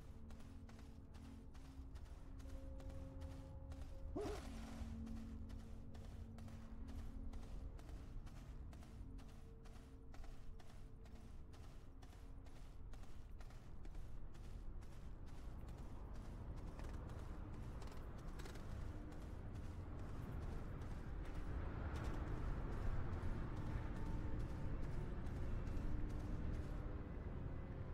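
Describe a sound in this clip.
Footsteps patter steadily on hard ground.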